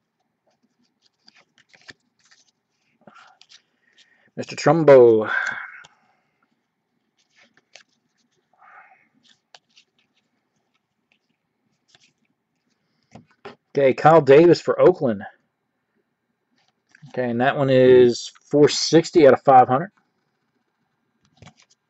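Trading cards rustle and slide against each other as they are handled.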